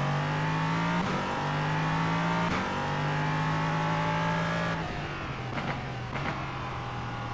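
A racing car's gearbox snaps through quick gear changes.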